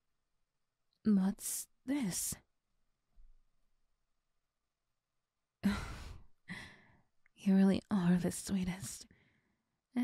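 A young woman speaks softly and playfully, close to a microphone.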